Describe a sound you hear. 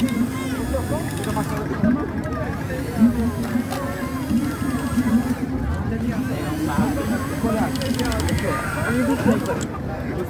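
A steam wand hisses and gurgles as it froths milk in clay cups.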